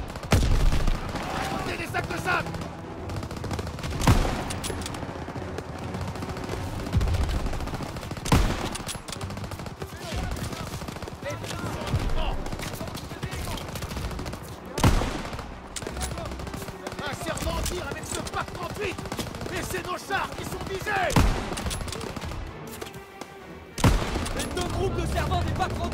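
Gunfire and explosions rumble in the distance throughout.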